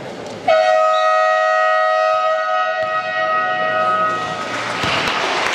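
A referee's whistle blows a long, shrill blast.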